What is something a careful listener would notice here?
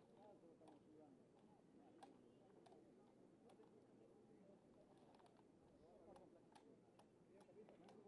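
A football thuds as players kick it.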